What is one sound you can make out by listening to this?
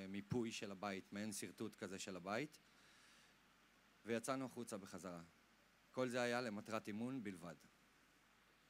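A young man speaks calmly into a microphone, heard through loudspeakers.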